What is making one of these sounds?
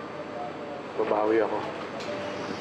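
A middle-aged man speaks.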